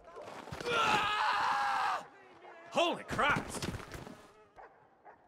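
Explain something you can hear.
A man cries out and groans in pain close by.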